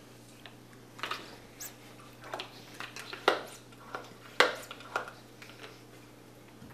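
A plastic hand pump squeaks and clicks as it is pumped.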